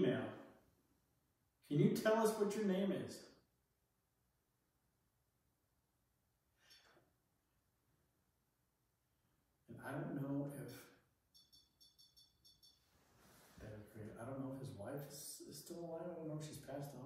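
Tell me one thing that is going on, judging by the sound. A man speaks calmly in a bare, echoing room.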